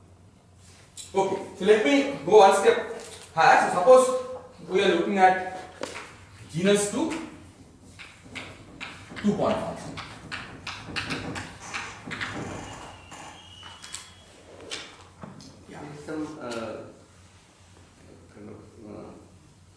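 A man speaks in a lecturing manner.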